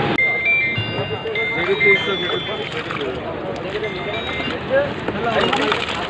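Water splashes as a basket scoops fish from a tub.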